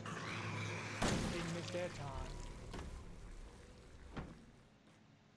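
A pistol fires loud shots.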